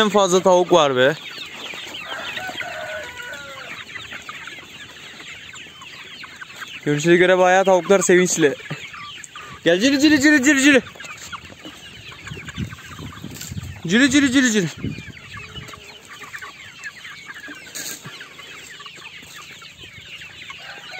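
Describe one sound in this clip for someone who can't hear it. Chickens cluck and chatter steadily.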